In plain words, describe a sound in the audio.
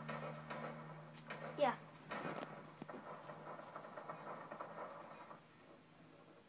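Music and sound effects from a video game play through a television speaker.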